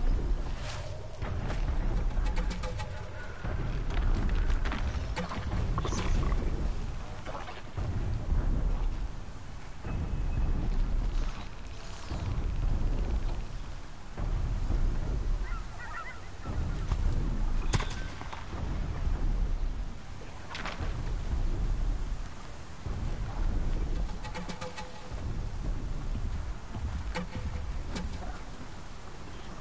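A climber scrambles up rock, hands and feet scraping and knocking on stone.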